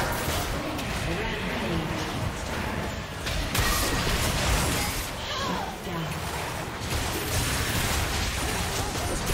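Game spell effects crackle and burst during a busy battle.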